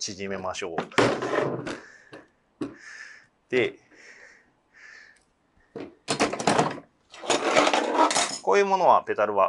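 Metal stand parts clank and rattle as they are packed into a case.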